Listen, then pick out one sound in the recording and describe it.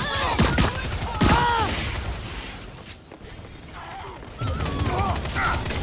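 An energy gun fires with sharp, whooshing zaps.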